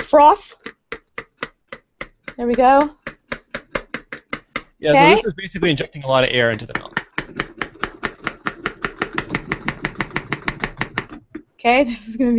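A plunger pumps rapidly with steady rhythmic clicks.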